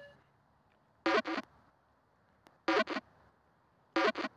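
A small ball rocks and clicks several times.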